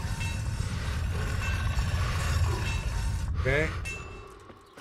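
A grinding wheel scrapes steadily against a blade.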